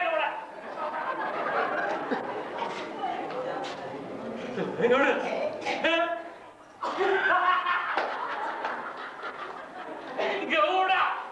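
A man speaks loudly and theatrically.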